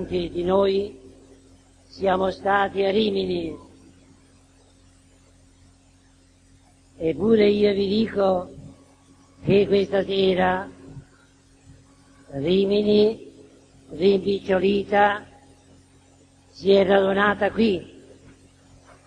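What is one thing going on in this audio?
An elderly man sings short chanted phrases, pausing between them.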